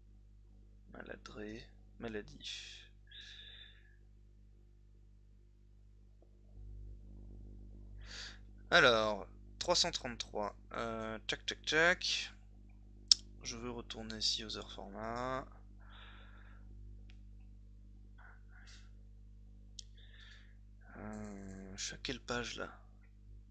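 A man talks calmly and close into a microphone.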